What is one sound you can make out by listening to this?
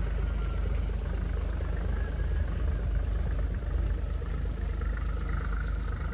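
A boat engine rumbles steadily across the water.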